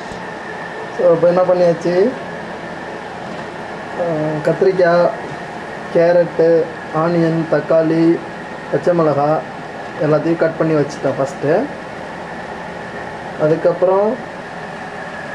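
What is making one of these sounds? A man talks calmly up close, in short bursts.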